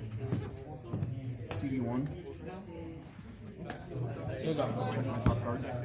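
Playing cards are shuffled by hand.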